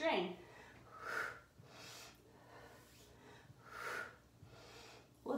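A woman breathes out hard in rhythm with an exercise.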